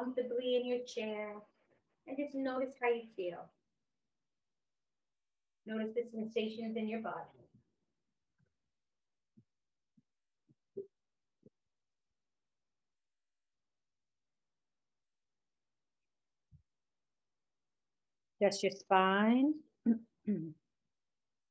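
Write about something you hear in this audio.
A woman speaks calmly and softly.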